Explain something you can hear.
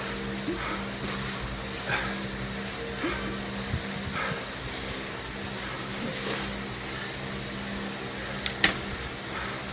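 A man breathes heavily as he pedals.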